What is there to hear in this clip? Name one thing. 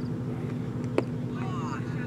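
A cricket bat strikes a leather ball with a sharp crack.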